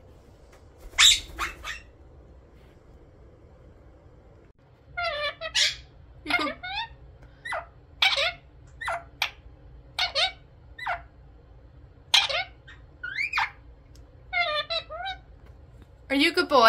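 A parrot chatters and squawks in short, shrill bursts close by.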